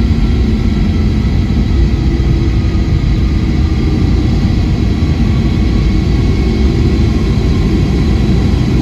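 A jet engine roars steadily close by.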